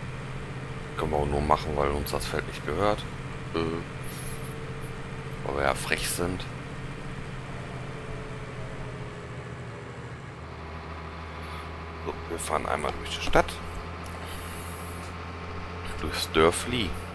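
A diesel truck engine drones as the truck drives along.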